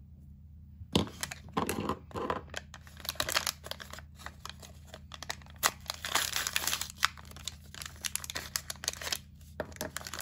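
A plastic wrapper crinkles and tears as it is opened.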